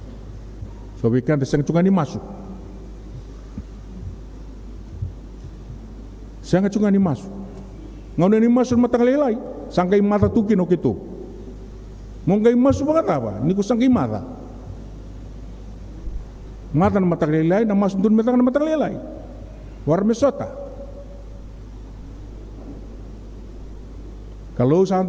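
A man preaches slowly into a microphone, in bursts with long pauses, in a reverberant hall.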